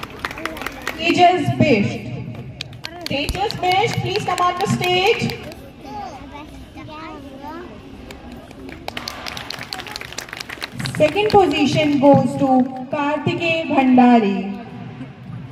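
A woman speaks over a loudspeaker outdoors, announcing with animation.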